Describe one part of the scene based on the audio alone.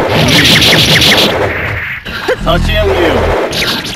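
Energy blasts whoosh and burst.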